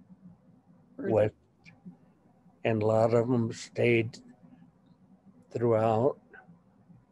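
An elderly man speaks slowly in short phrases over an online call.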